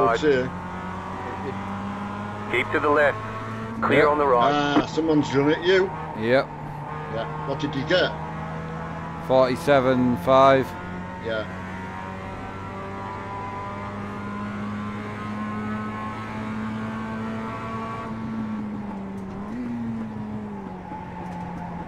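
A racing car engine hums steadily at high revs.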